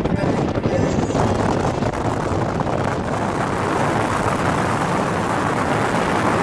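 Wind roars loudly past the microphone.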